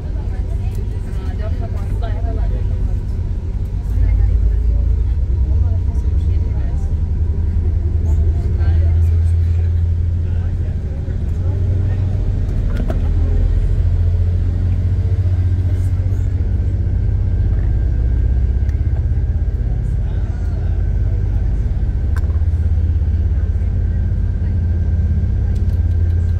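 A boat's engine rumbles low and steady.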